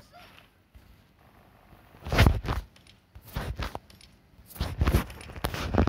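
Items rustle as they are picked up.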